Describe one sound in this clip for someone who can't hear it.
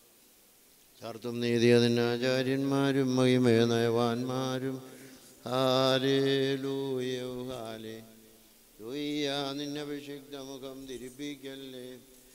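A man chants in a sustained, melodic voice through a microphone.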